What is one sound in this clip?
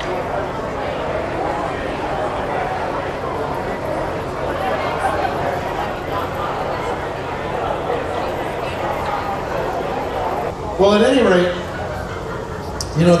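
A crowd of men and women chatter all around in a large tent.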